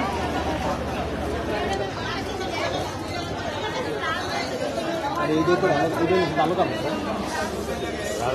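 Paper packets rustle as they are handed out.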